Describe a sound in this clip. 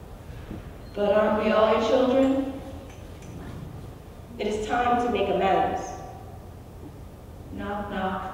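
A young woman speaks with passion into a microphone, heard through a loudspeaker in a hall.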